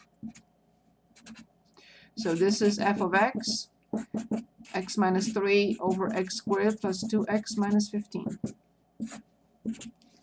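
A felt-tip marker squeaks and scratches on paper.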